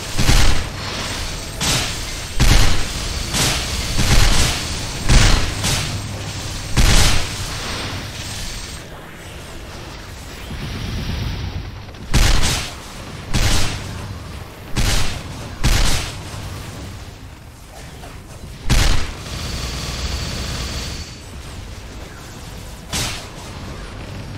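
Video game attack effects burst and boom over and over.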